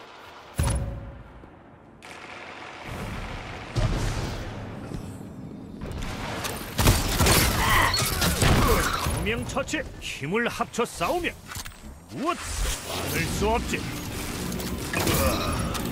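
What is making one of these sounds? A bow twangs sharply as arrows are loosed.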